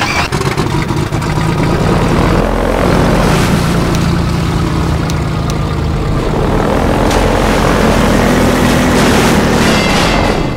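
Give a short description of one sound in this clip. A buggy engine drones and revs steadily.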